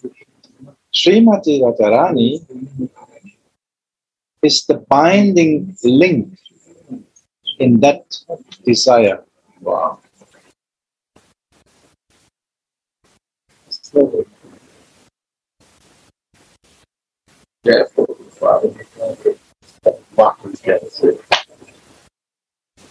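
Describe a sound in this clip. A man speaks with animation, pausing between phrases.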